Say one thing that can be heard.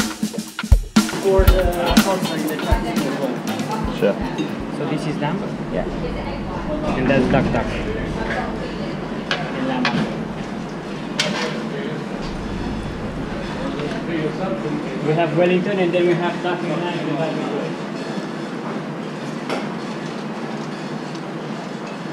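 A man talks nearby in a busy, echoing room.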